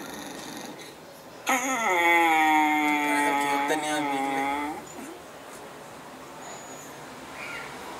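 Young men laugh softly close by.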